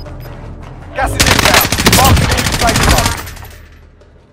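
A rifle fires a rapid burst of loud gunshots that echo.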